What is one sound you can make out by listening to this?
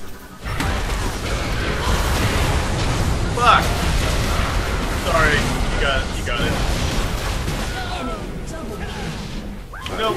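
Magic spells whoosh and crackle in a fast, noisy fight.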